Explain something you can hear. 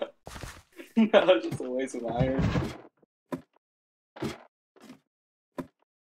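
Footsteps tap lightly on a wooden ladder while climbing.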